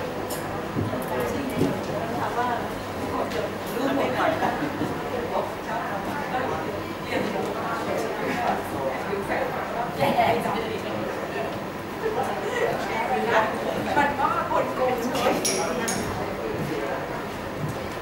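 A woman speaks steadily through a loudspeaker in an echoing room.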